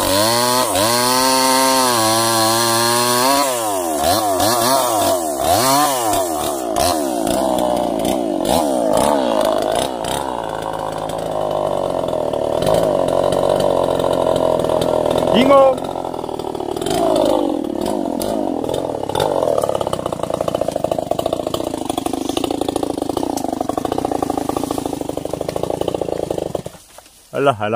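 A chainsaw engine revs and whines loudly, cutting through wood.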